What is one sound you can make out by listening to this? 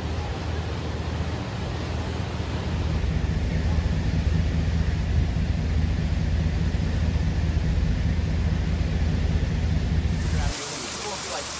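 Fast-flowing floodwater roars past.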